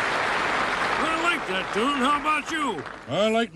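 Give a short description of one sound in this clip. An elderly man speaks in a gruff, animated voice.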